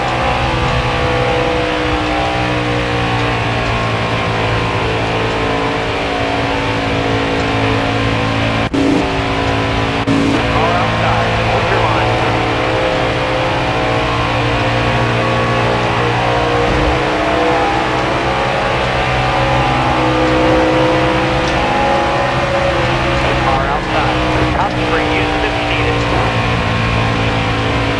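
Many race cars roar past close by.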